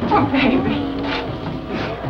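A young woman cries out in distress.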